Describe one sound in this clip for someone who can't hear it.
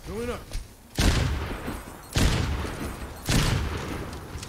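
Loud blasts boom.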